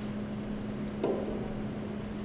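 A microphone thumps as it is handled.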